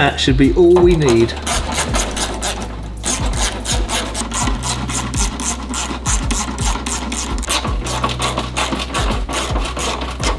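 A ratchet clicks rapidly as a bolt is turned.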